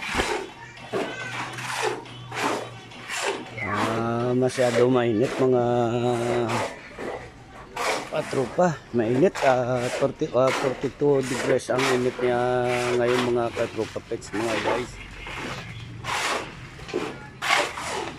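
A shovel scrapes through wet concrete.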